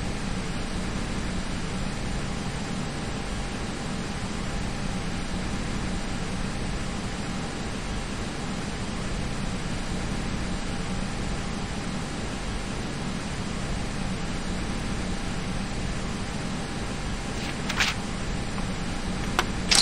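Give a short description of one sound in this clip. Jet engines hum steadily at idle.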